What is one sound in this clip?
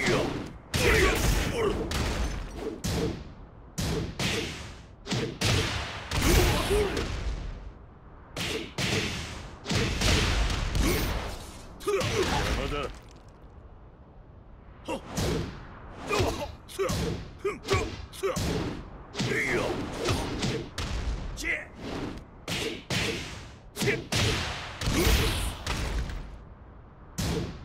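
Punches and kicks land with heavy impact thuds in quick bursts.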